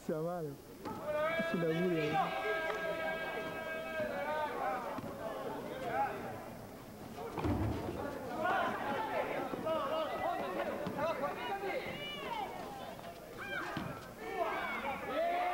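A crowd of spectators shouts and cheers.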